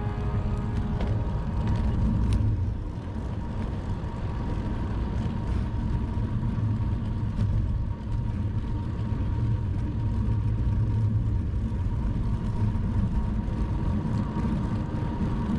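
Wind rumbles loudly and steadily against a moving bicycle.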